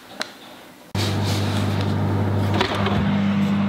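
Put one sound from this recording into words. An oven fan hums steadily.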